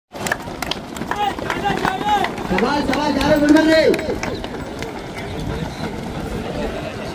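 Many feet patter on a running track.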